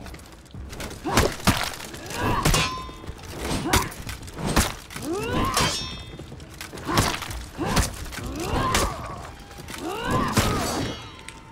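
Swords and axes clash and strike in rapid blows.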